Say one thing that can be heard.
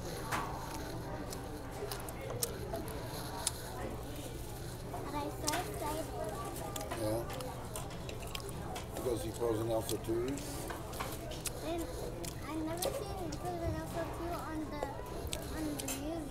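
A young girl talks nearby.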